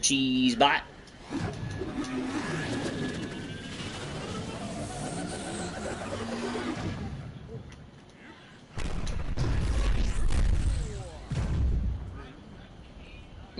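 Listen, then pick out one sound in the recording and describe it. Video game blasters fire and zap repeatedly.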